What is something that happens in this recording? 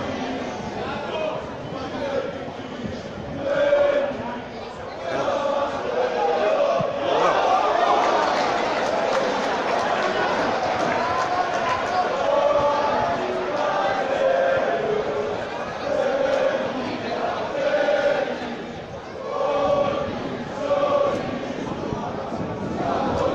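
A large crowd of fans chants and sings loudly outdoors.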